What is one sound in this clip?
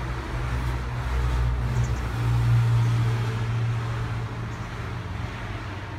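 A car drives past outside.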